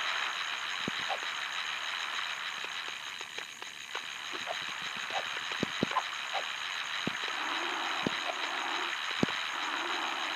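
Short electronic game sound effects pop and clink.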